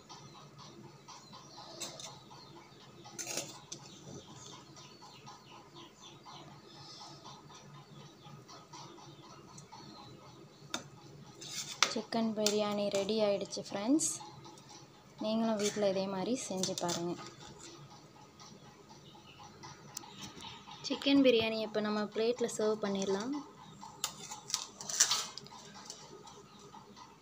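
A metal spoon scrapes and stirs rice in a metal pot.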